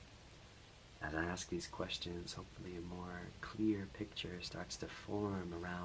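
A man speaks calmly and softly, close to a microphone.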